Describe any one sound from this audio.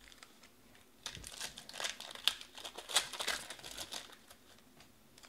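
Foil card packs crinkle and rustle as hands shuffle them.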